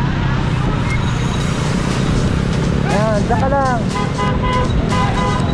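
Motorcycle engines hum steadily nearby.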